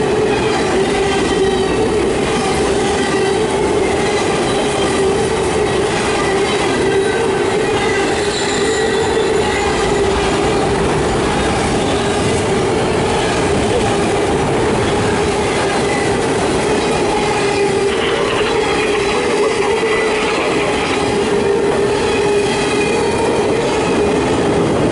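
Train wheels squeal against the rails.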